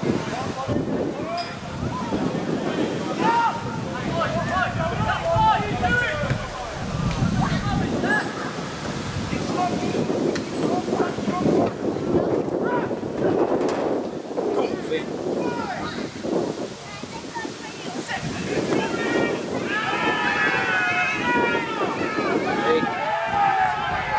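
Men shout to each other across an open field outdoors.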